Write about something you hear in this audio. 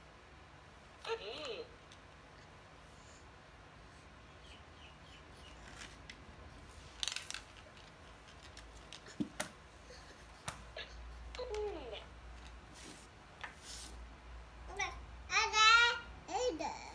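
A baby babbles and squeals nearby.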